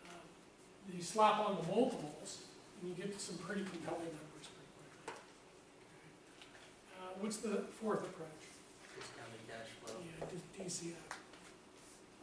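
A man speaks calmly in a room.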